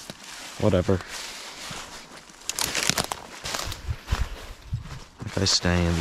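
Dry leaves rustle and crunch underfoot with each step.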